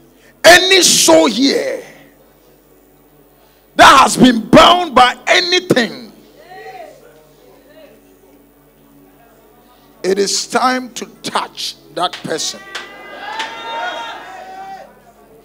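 A man shouts with fervour through a microphone in bursts.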